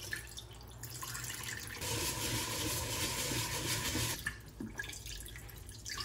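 Water drains from a pot and splatters into a sink.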